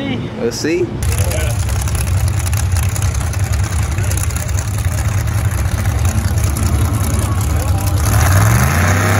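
A truck engine idles with a deep rumble.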